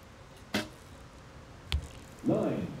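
A bowstring snaps as an arrow is shot.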